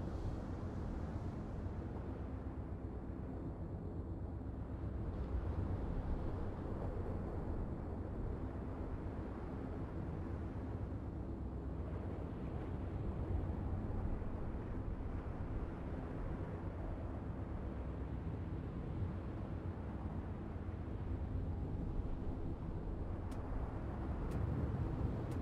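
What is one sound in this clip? A ship's engine rumbles steadily.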